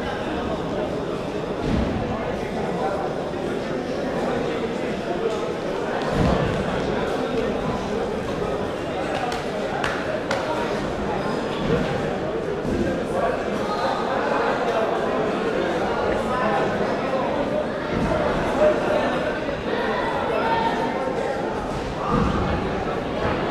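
Footsteps thud on a padded floor.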